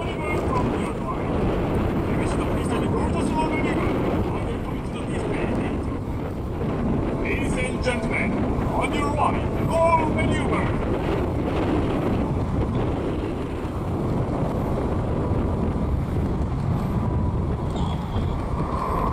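Jet engines roar steadily overhead.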